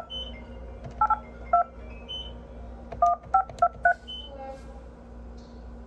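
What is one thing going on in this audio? A phone is handled close up, with soft knocks and rubbing.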